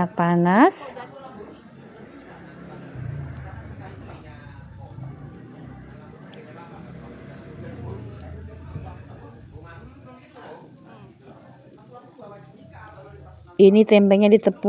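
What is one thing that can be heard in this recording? Oil sizzles and crackles as battered pieces fry in a pan.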